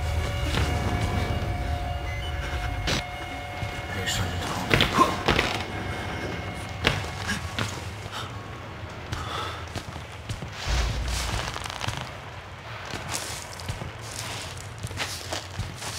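Footsteps creak on old wooden floorboards.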